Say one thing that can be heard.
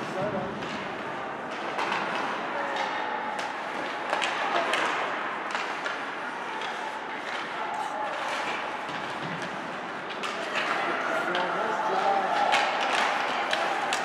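Skates scrape and hiss on ice.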